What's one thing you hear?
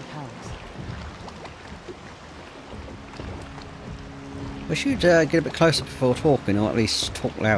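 Water laps against the hull of a small boat.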